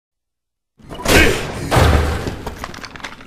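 A door bangs open.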